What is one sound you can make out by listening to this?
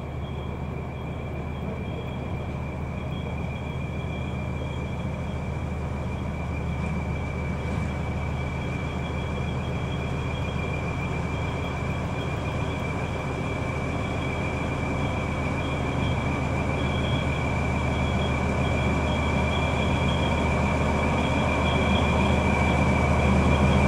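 A train approaches from afar, its low rumble slowly growing louder.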